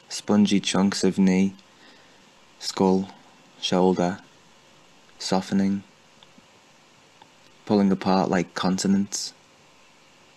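A young woman reads out slowly and calmly over an online call, with long pauses.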